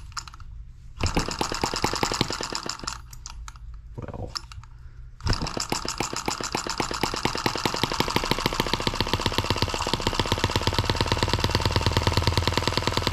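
A small engine chugs rapidly with a steady ticking beat.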